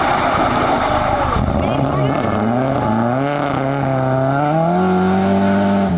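Gravel crunches and sprays under skidding tyres.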